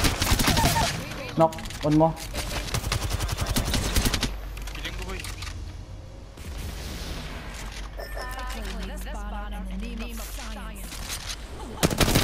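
A young man talks through a microphone.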